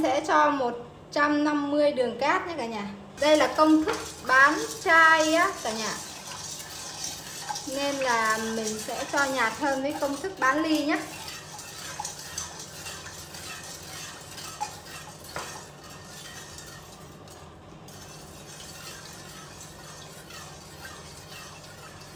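Water bubbles at a boil in a pot.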